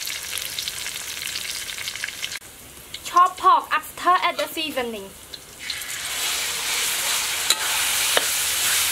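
Hot oil sizzles loudly in a wok.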